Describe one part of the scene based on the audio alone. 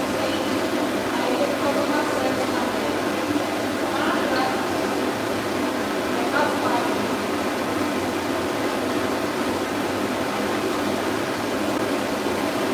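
A pet dryer blows air with a steady roar.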